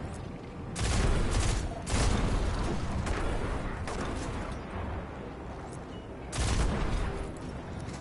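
A gun fires in loud bursts.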